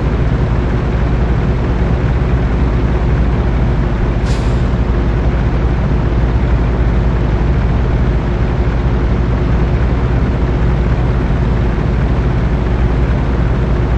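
Truck tyres roll over a rough gravel road.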